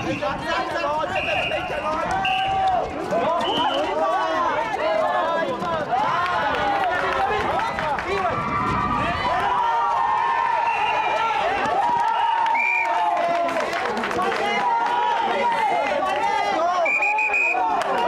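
A crowd of spectators cheers and chatters.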